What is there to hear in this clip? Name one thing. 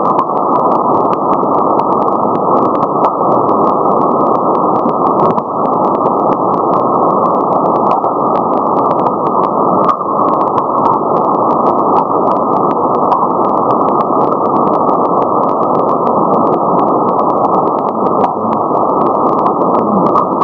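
Sharp crackles pop through the radio static.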